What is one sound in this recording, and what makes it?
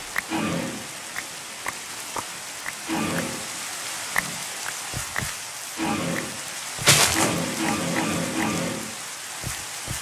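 Leaves crunch and rustle in short repeated bursts as blocks break.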